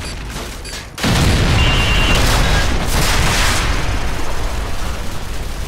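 A heavy explosion booms and rumbles away slowly.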